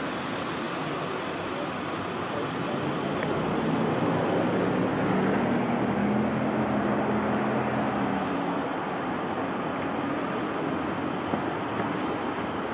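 Traffic noise hisses steadily outdoors.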